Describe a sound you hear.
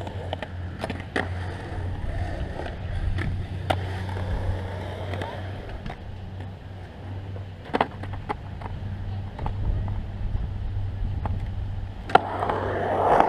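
A skateboard's wheels roll and rumble over concrete.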